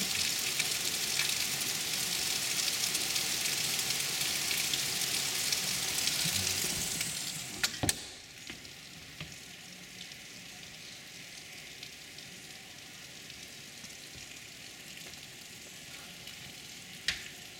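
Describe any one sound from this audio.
Heavy rain pours down steadily and becomes muffled partway through.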